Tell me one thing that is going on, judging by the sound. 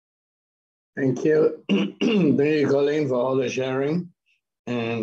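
An older man speaks with animation over an online call.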